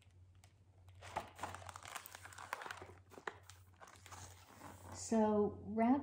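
Pages of a book rustle as they turn.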